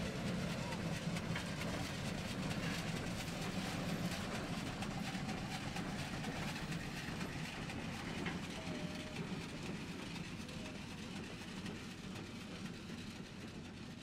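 A steam locomotive chugs heavily past, close by, slowly fading.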